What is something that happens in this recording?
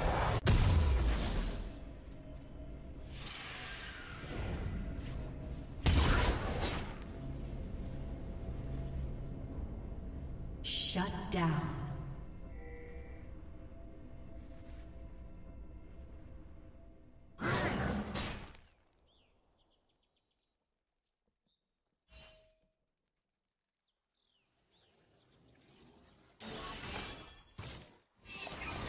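Game sound effects whoosh, thud and chime.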